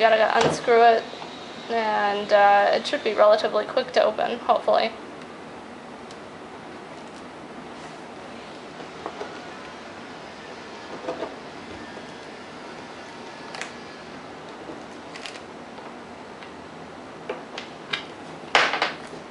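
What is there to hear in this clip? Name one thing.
Small metal pieces click and scrape against a board.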